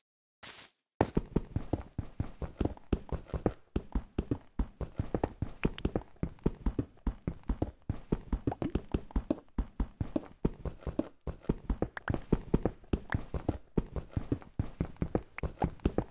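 A pickaxe taps rapidly against stone, knocking and scraping.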